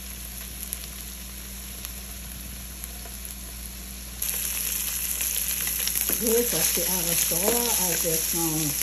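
Sausage slices sizzle in a hot frying pan.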